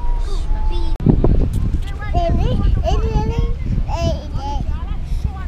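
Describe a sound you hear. A toddler giggles close by.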